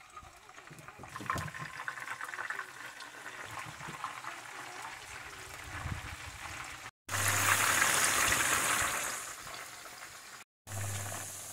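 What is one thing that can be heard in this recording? Fish sizzles and crackles in hot oil in a frying pan.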